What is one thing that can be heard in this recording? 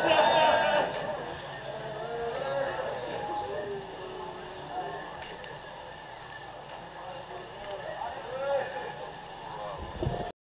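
Men murmur and talk quietly nearby.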